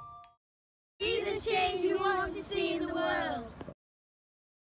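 A young girl speaks brightly and close by.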